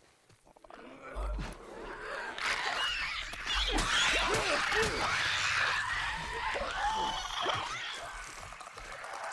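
A creature shrieks and snarls during a struggle.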